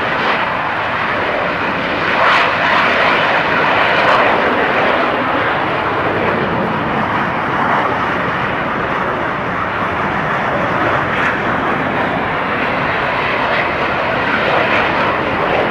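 A jet engine roars steadily in the distance.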